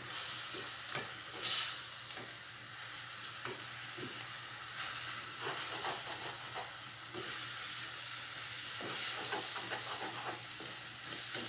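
Vegetables sizzle frying in a pan.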